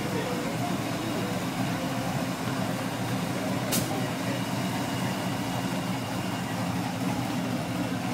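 People chatter in the background outdoors.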